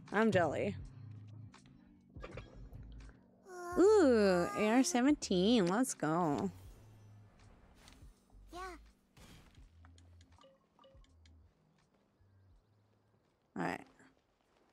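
A young woman speaks with animation into a close microphone.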